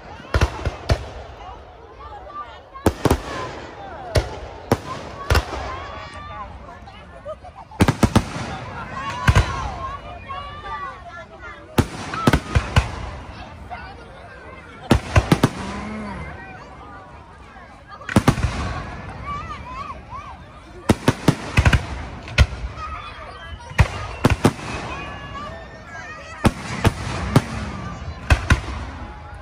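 Fireworks crackle and fizzle after the bursts.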